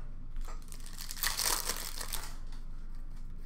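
A plastic wrapper crinkles and tears open.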